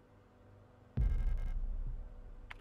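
A deep thud booms as an item is picked up.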